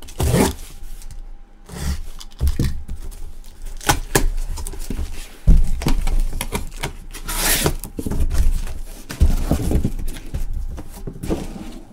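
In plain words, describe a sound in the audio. Gloved hands handle and open a cardboard box.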